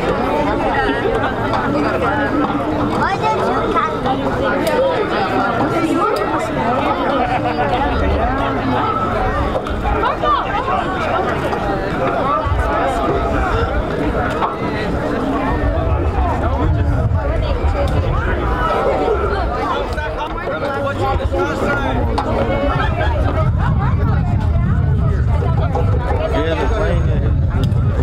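Many boys and young men chatter and call out nearby, outdoors.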